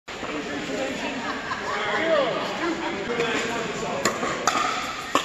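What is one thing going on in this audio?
Several people chatter in the distance in an echoing hall.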